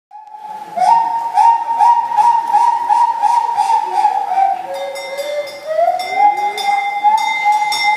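An acoustic guitar strums along through loudspeakers.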